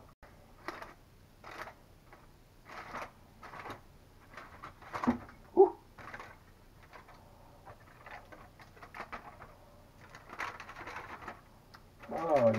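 Aluminium foil crinkles and rustles as hands fold and open it.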